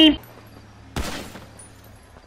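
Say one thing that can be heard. A gunshot cracks once.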